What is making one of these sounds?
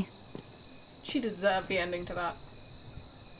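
A young woman talks casually close to a headset microphone.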